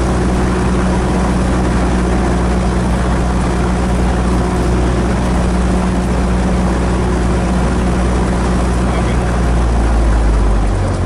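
A small propeller plane's engine drones loudly and steadily.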